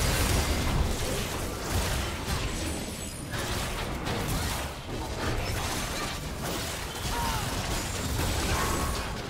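Video game spells whoosh and crackle in a busy fight.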